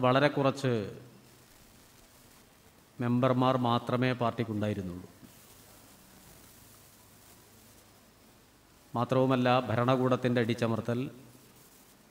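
A middle-aged man speaks calmly into a microphone, in short phrases with long pauses.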